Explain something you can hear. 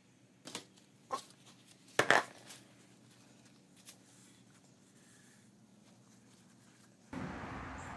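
A metal can clinks as a rag rustles against it.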